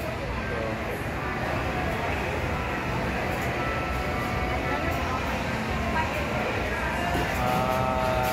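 A busy crowd murmurs throughout.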